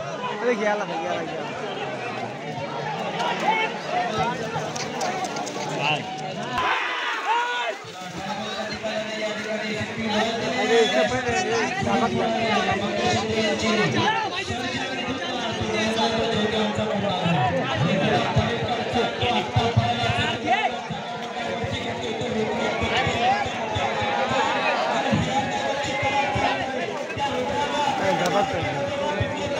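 A large outdoor crowd cheers and shouts loudly.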